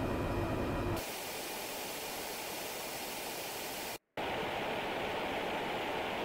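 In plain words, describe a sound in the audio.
A jet airliner's engines roar with a steady hiss from outside while cruising.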